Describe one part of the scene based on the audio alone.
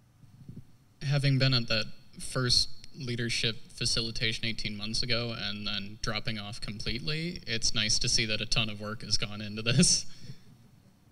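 A man speaks through a microphone in a large room.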